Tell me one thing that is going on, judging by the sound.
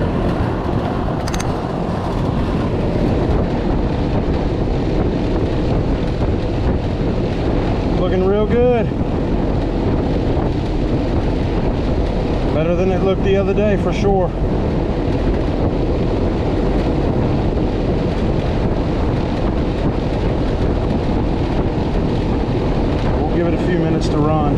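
An outdoor air conditioning unit hums and whirs steadily.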